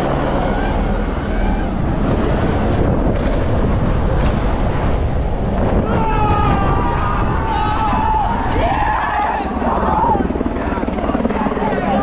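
Bicycle tyres rumble and crunch over rough rock and dirt.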